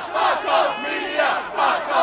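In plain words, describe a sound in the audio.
A young man shouts a chant.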